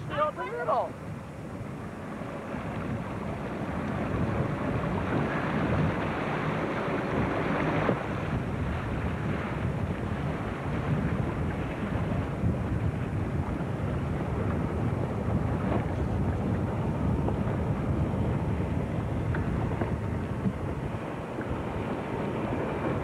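A motorboat engine rumbles steadily on the water.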